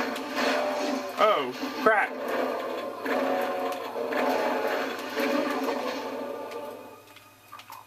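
Rapid gunfire from a video game rings out through a small speaker.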